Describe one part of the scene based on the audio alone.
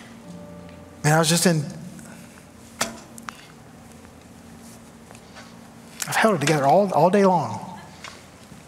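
A man speaks with emphasis into a microphone, in short bursts.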